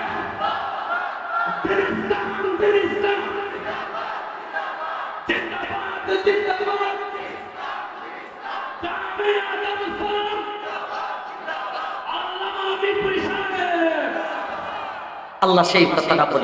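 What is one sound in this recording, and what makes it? A middle-aged man speaks into a microphone over a loudspeaker, in a reverberant hall.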